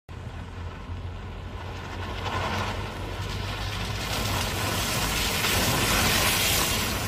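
A car engine hums as it drives closer.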